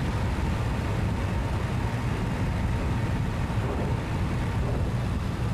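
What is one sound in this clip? A propeller aircraft engine drones loudly and steadily from close by.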